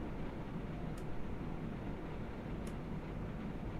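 A switch clicks twice.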